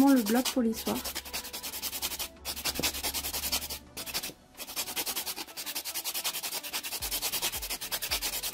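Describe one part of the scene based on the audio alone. A foam buffer rubs briskly over a fingernail.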